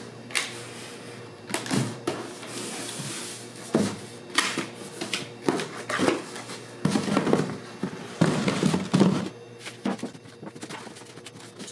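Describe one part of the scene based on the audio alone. Cardboard boxes rub and thump as they are folded and pressed.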